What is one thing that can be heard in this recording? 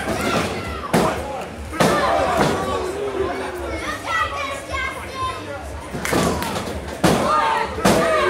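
A referee slaps the ring canvas during a pin count.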